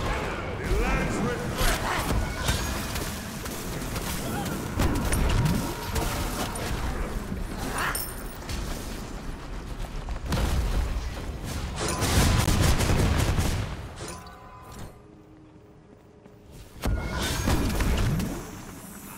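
Game weapons clash and strike.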